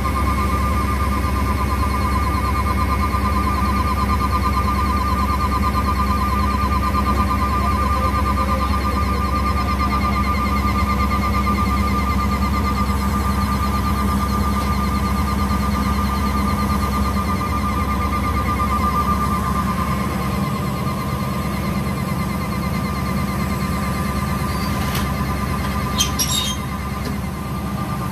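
A fire truck engine idles with a steady low rumble.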